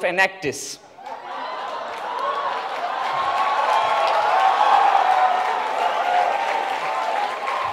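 A large audience laughs and cheers.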